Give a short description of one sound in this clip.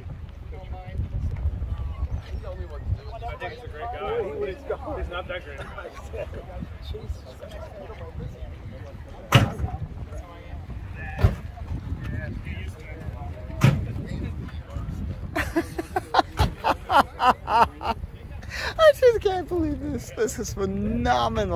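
Adult men and women talk casually outdoors nearby.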